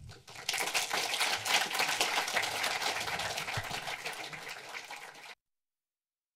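An audience applauds in a large hall, and the clapping slowly fades.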